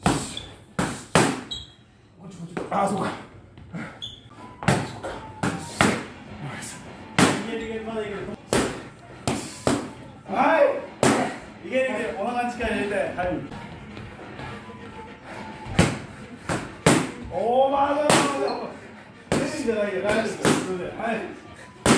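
Boxing gloves smack sharply against focus mitts.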